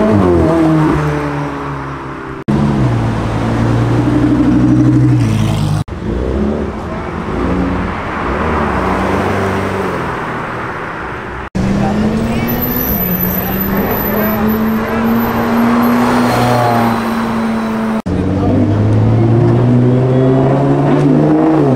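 Sports car engines roar loudly as the cars accelerate past.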